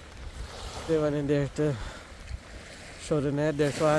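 Small waves wash gently onto a sandy shore.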